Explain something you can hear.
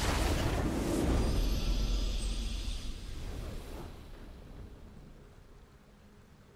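A triumphant game fanfare blares and slowly fades away.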